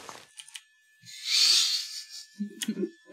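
Water splashes as something plunges in.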